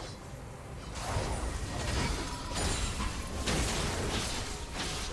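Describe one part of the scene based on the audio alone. Spell effects whoosh and crackle as game characters fight.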